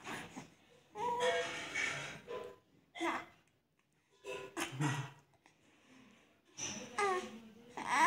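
A baby babbles softly close by.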